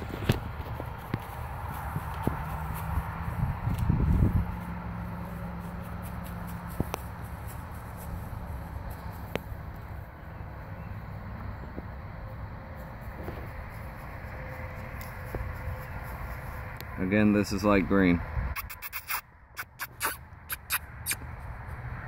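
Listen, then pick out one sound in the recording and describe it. A rake rustles and scratches through grass.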